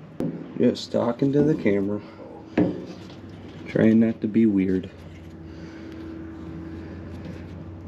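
A hand handles a small metal engine part, tapping and clicking it.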